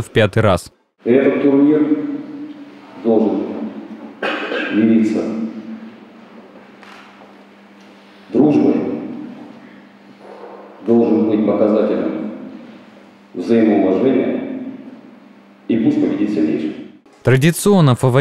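A man speaks into a microphone over loudspeakers, echoing in a large hall.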